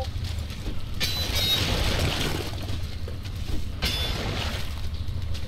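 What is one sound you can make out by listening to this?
A weapon swings through water with a rushing whoosh.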